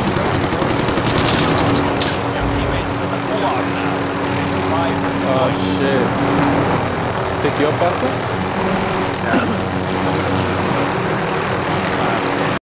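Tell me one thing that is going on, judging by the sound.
A helicopter's rotor thumps and whirs steadily overhead.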